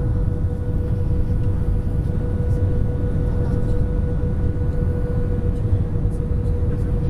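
A steady engine whine hums beneath the rumble.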